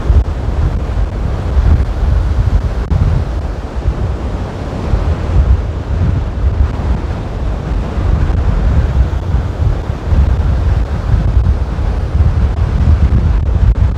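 Strong wind blows and rumbles outdoors.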